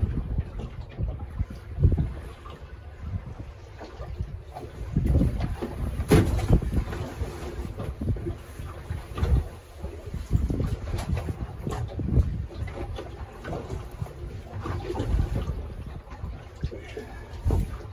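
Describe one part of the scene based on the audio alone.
A fishing net rustles as a man hauls it in.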